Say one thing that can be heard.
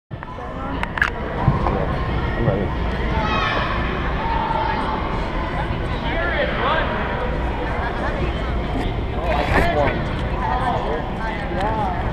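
A crowd of young people chatters in the background of a large echoing hall.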